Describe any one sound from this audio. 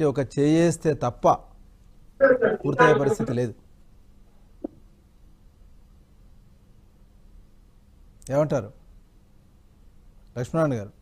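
A middle-aged man speaks in bursts over a phone line, with long pauses.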